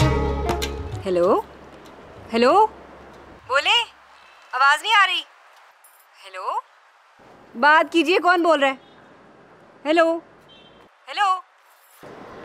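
A young woman speaks anxiously into a phone, close by.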